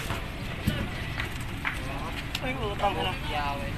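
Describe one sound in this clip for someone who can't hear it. Wet fish slap and slide against each other as they are handled.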